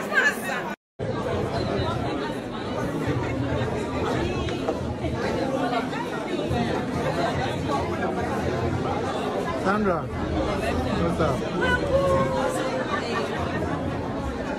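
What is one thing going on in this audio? A crowd of people chatters and cheers nearby.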